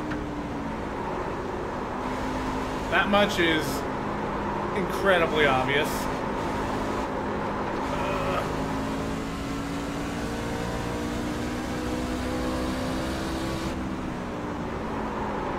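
A race car engine drones steadily, its pitch rising and falling with the throttle.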